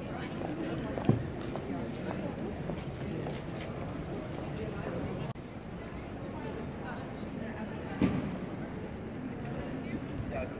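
Men and women chatter nearby outdoors.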